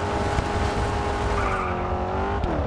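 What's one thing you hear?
Tyres spray gravel as a car slides off a track.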